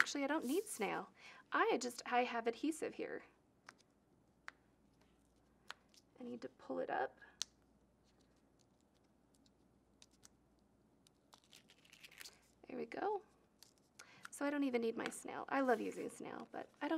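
Fingers tap and rub lightly on card paper.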